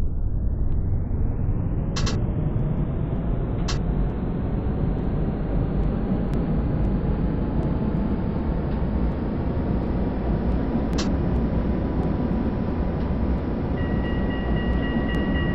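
A tram motor hums and rumbles steadily as the tram rolls along the track.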